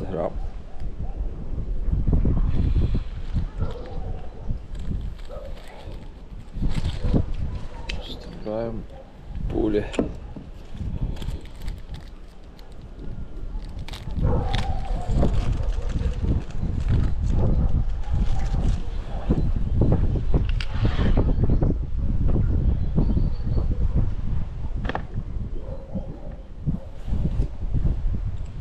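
Wind blows outdoors.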